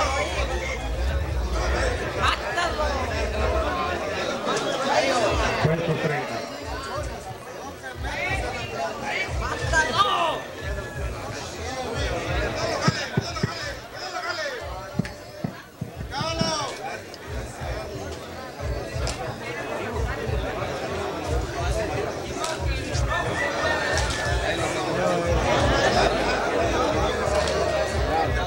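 A crowd of men shout and cheer loudly nearby.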